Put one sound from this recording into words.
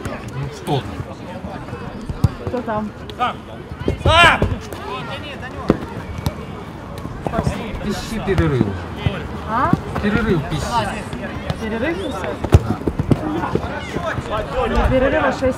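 Men shout to each other outdoors across an open pitch.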